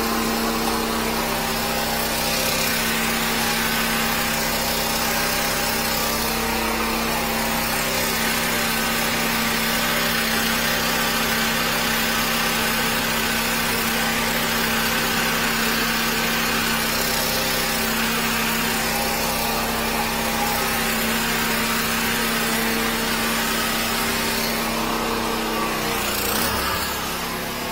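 A high-pressure water jet roars steadily inside a drain pipe.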